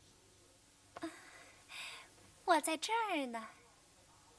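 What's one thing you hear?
A young woman giggles playfully.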